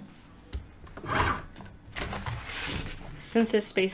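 Paper sheets slide and rustle across a cutting mat.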